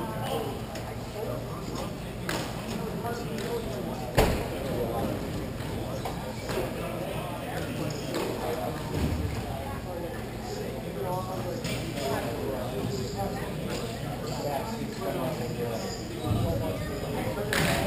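Skate wheels roll and scrape across a hard floor in a large echoing hall.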